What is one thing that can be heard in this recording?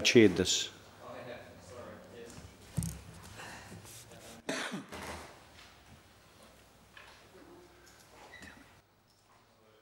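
A man speaks calmly into a microphone in a room.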